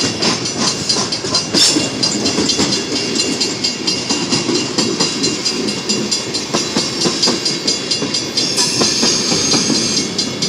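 A long freight train rumbles past close by, its wheels clanking and squealing on the rails.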